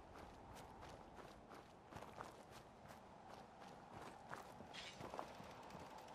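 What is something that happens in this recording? Footsteps crunch steadily over grass and rock.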